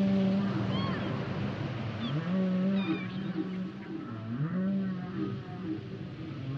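Whales call underwater in long, wavering moans and high squeals.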